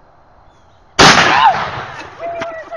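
A rifle fires a single loud shot outdoors.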